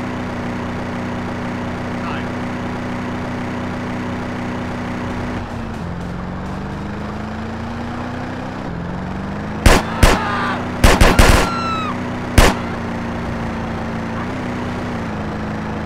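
A car engine hums steadily, shifting pitch as it changes gear.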